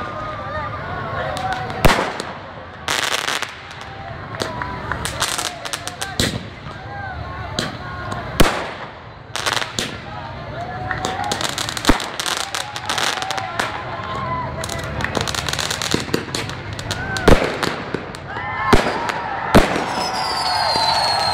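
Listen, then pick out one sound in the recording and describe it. Fireworks bang and crackle loudly outdoors.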